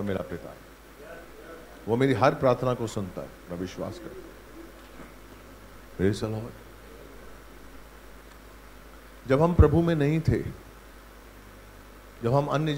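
An elderly man speaks calmly into a microphone over a loudspeaker, with pauses.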